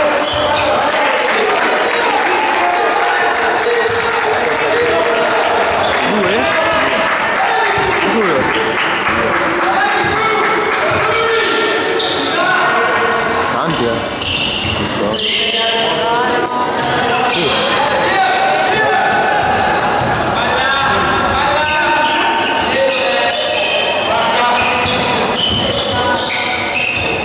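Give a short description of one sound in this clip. A crowd of spectators chatters and shouts in an echoing gym.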